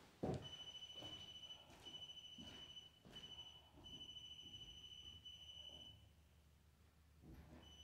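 Footsteps shuffle on a floor nearby.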